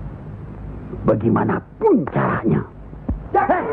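An elderly man speaks loudly and commandingly.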